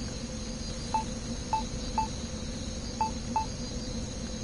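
Short soft blips sound as a menu cursor moves.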